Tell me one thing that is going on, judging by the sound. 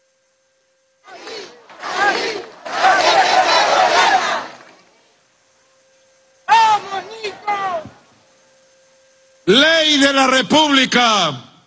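A man speaks forcefully into a microphone over loudspeakers outdoors.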